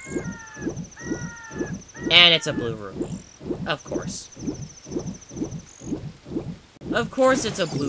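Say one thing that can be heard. A game character splashes while swimming through water.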